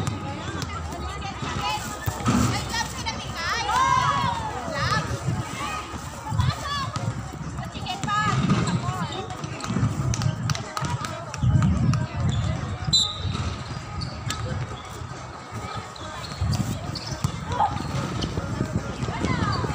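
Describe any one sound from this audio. Young women call out and shout to each other outdoors.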